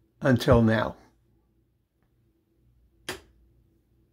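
A light switch clicks.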